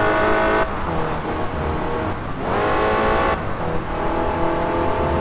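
A car engine roars at high revs, dropping in pitch with each gear change and climbing again.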